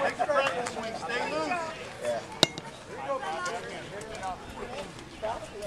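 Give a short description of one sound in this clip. Men and boys chatter and call out nearby outdoors.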